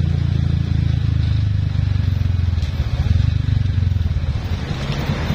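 A motorcycle engine rumbles loudly while riding.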